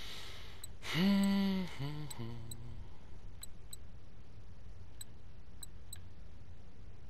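Short soft clicks tick now and then as menu items change.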